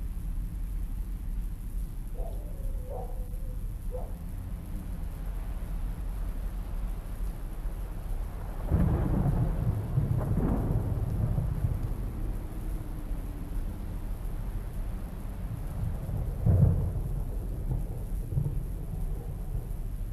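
Wind rumbles low and steadily outdoors.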